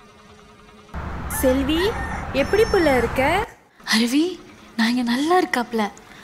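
A young woman talks cheerfully into a phone, close by.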